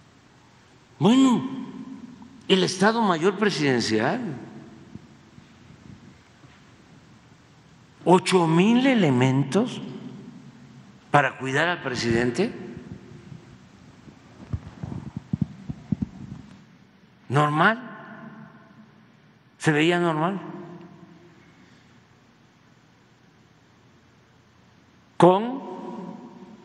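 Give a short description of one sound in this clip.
An elderly man speaks slowly and deliberately into a microphone, with long pauses, in a large echoing room.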